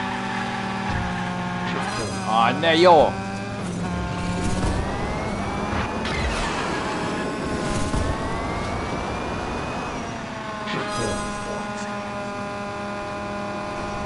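A racing car engine whines steadily, rising and falling in pitch.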